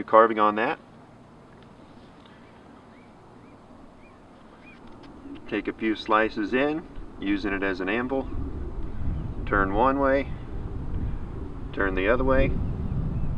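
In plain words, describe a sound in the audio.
An elderly man talks calmly close by, in short bursts.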